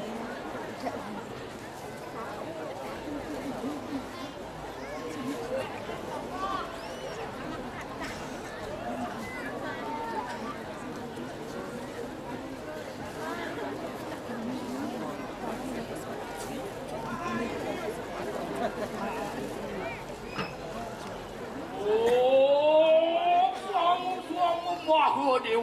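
A percussion ensemble of metal gongs and chimes plays.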